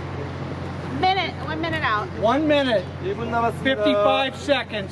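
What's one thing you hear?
Young women talk and laugh nearby.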